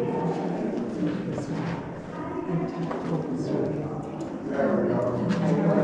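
Several young women chat and talk over one another nearby.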